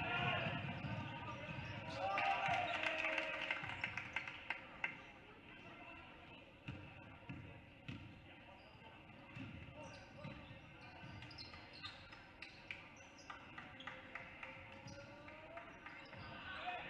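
Basketball shoes squeak sharply on a hardwood court.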